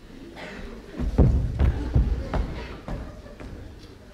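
Footsteps thump on a wooden floor.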